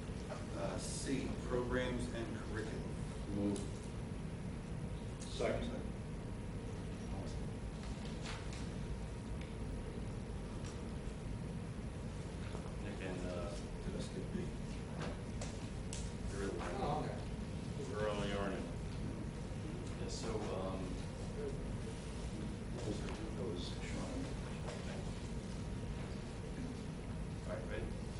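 A man speaks slowly and haltingly into a microphone.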